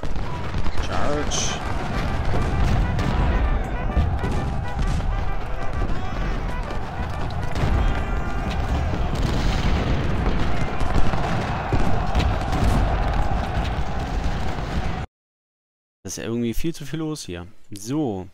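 Muskets fire in scattered volleys.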